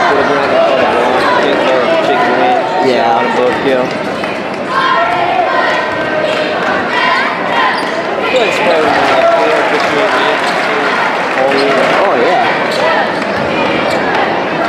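A crowd of spectators cheers and chants loudly in a large echoing gym.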